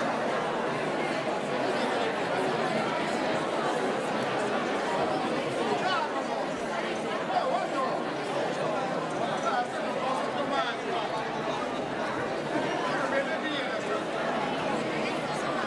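A crowd of men and women murmurs and chatters nearby outdoors.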